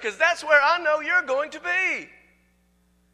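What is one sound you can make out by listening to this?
A man speaks loudly and with animation through a microphone in an echoing hall.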